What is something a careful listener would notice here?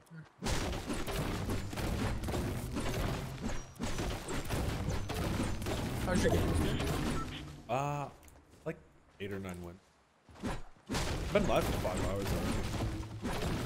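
A pickaxe chops repeatedly against rock and wood.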